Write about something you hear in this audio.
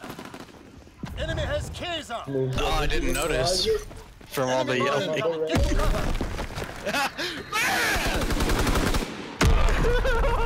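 A shotgun fires loud, booming shots.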